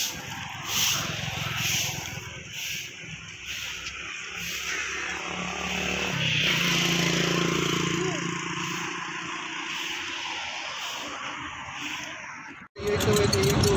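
Footsteps tread along a paved path outdoors.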